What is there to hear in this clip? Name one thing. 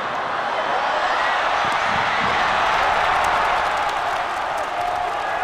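A crowd's roar swells loudly as the ball goes into the net.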